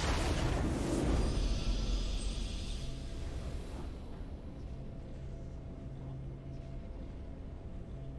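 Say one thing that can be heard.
Triumphant music swells and plays on.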